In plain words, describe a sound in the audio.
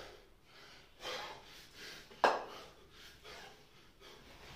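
A man breathes out hard.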